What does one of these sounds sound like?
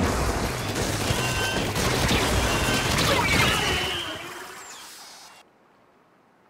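A loud explosion bursts and crackles, then fades away.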